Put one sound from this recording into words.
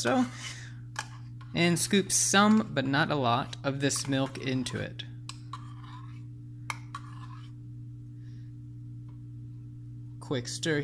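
A metal spoon taps and clinks against a glass.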